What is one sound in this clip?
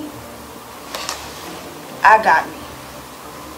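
A young woman speaks tensely, close by.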